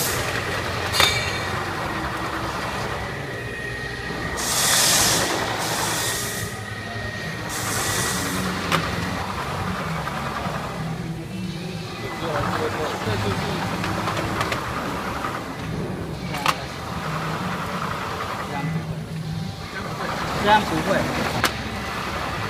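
A packing machine clicks and clunks as it works.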